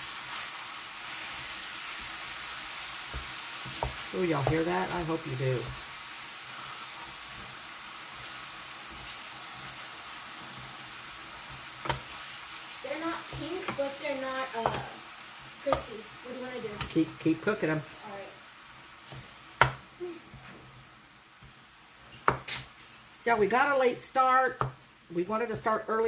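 A wooden spoon scrapes and clacks against a pan as food is stirred.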